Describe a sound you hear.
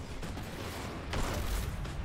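A heavy energy blast booms.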